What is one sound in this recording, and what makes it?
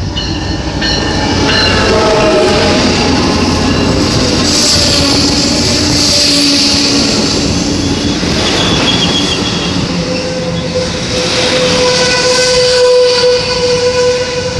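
Train brakes squeal with high, wavering tones.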